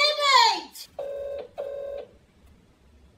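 A phone rings out twice over a loudspeaker.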